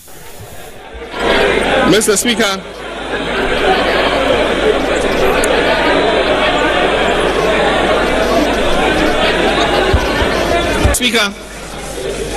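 A crowd cheers and applauds in a large hall.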